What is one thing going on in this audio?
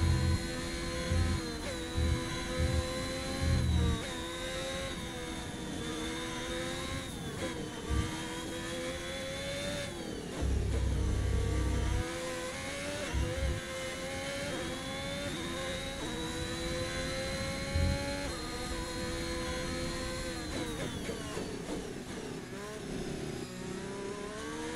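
A racing car engine whines loudly, rising and falling in pitch as gears shift.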